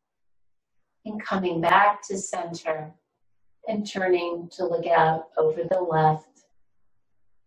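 An elderly woman speaks calmly and clearly into a nearby microphone.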